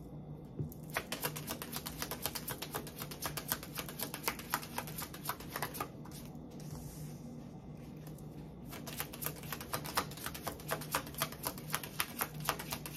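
Fingers tap and scratch quickly on a small hard object close up.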